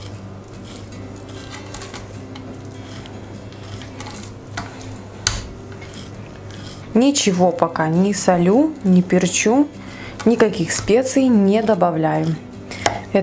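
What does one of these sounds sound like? A knife taps and scrapes softly on a wooden cutting board.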